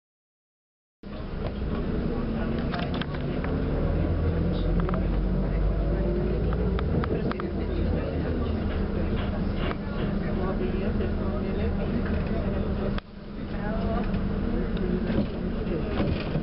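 A bus engine rumbles steadily, heard from inside.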